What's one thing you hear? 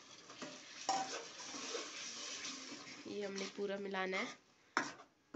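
Sauce sizzles and bubbles in a pan.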